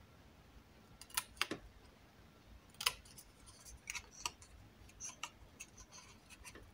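Small scissors snip through card.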